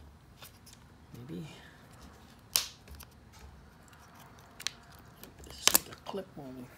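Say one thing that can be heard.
A small plastic clip clicks sharply.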